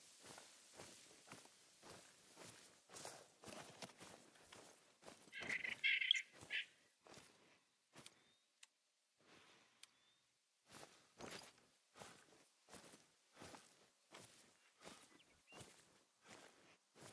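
Footsteps swish through dry grass.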